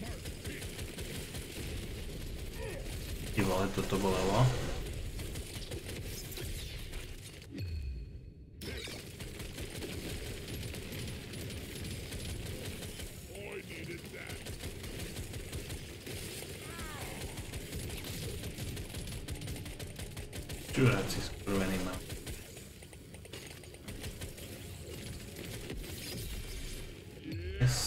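Game gunfire and explosions crackle steadily.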